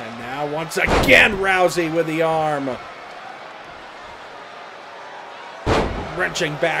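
A body thuds heavily onto a wrestling ring mat.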